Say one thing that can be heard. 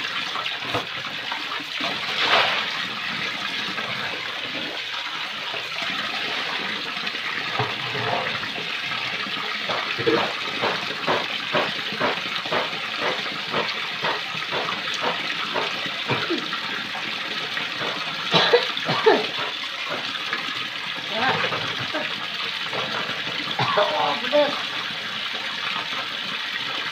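Hands splash and rub in water in a basin.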